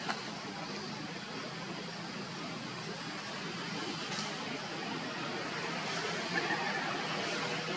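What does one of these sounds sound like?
Leaves rustle softly as monkeys shift on a tree branch.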